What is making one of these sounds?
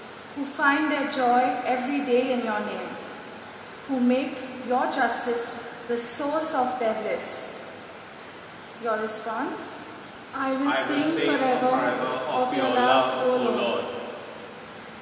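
A woman speaks calmly into a microphone in an echoing hall.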